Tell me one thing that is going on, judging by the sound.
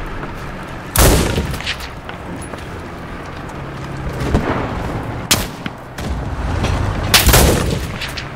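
Rifle shots crack sharply now and then.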